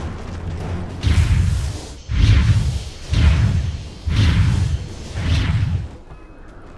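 Magic blasts boom and crackle in quick succession.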